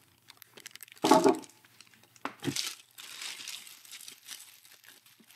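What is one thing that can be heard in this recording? Plastic wrap crinkles and rustles as hands pull at it.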